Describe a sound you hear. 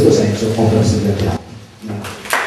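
A man speaks into a microphone, heard through a loudspeaker.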